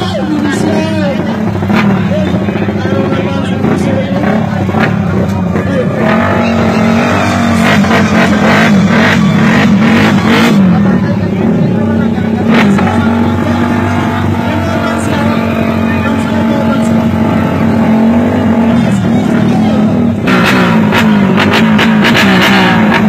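Motorbike engines rev loudly close by.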